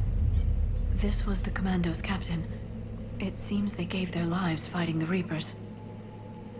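A young woman speaks calmly and gravely.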